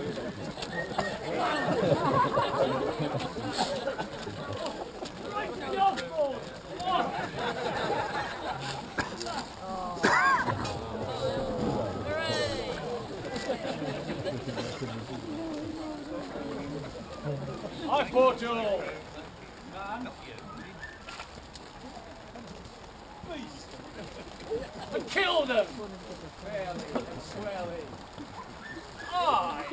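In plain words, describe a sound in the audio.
Rain patters on umbrellas.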